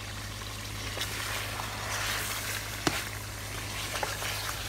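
A metal spoon scrapes and stirs food in a metal pan.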